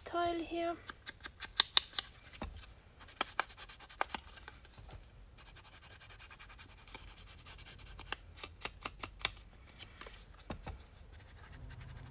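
A small ink pad taps against paper.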